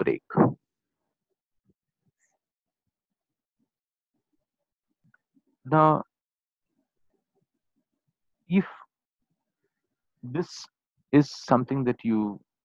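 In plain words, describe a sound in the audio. A middle-aged man speaks calmly in short bursts, close to a microphone, with pauses between phrases.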